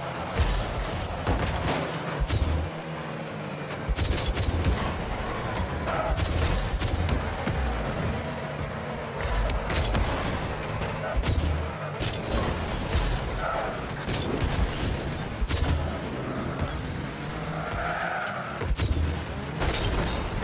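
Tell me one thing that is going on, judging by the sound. Game car engines roar and boost with a rushing hiss.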